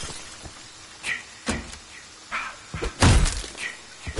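A door creaks open.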